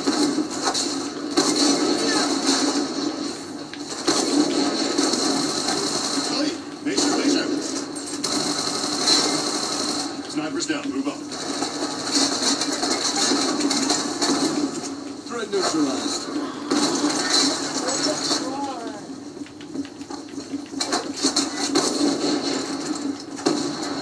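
Video game gunfire and explosions play loudly through loudspeakers in a room.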